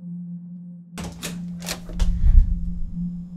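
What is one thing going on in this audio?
A young woman speaks up close.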